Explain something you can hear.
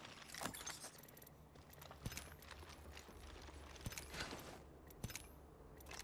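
Soft interface clicks tick as items are picked from a menu.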